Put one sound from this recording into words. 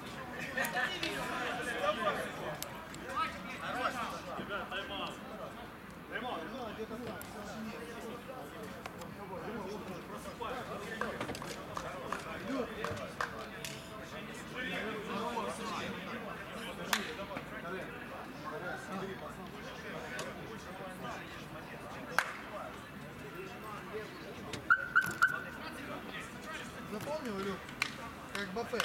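Several men shout and call out outdoors, some close and some farther off.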